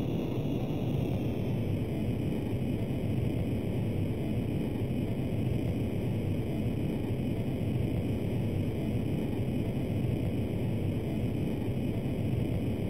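A jet engine drones in a retro computer game.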